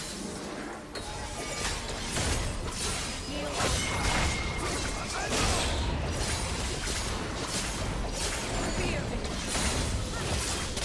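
Game spells whoosh and crackle in quick bursts of fighting.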